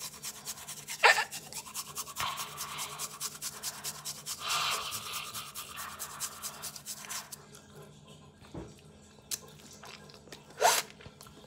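A young woman gags and groans close by.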